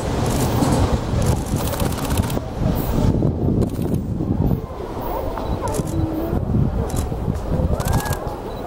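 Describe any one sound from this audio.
A high-speed train rushes past and fades into the distance.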